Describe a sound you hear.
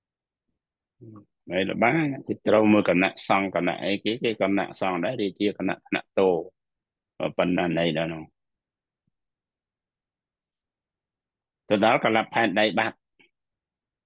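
A middle-aged man speaks calmly through an online call, pausing now and then.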